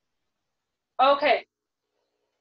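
A woman speaks briefly and calmly into a microphone close by.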